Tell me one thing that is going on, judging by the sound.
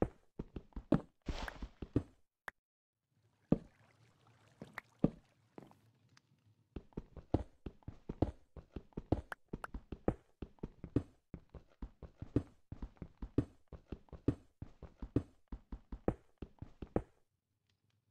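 A pickaxe chips rapidly at stone in quick, repeated knocks.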